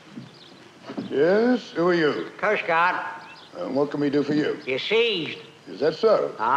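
An elderly man speaks loudly, close by.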